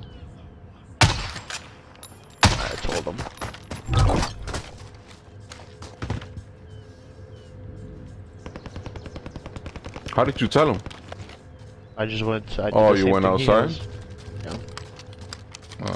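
A rifle clacks and rattles as it is handled and reloaded.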